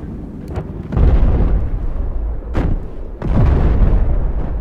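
A large explosion booms nearby with a rumble.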